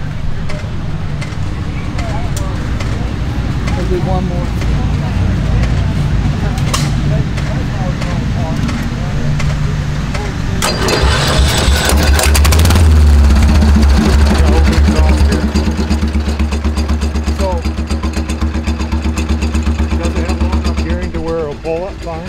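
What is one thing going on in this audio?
A small engine idles and revs loudly close by.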